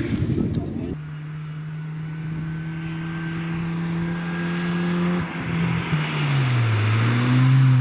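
A car engine drones steadily as it climbs toward the listener.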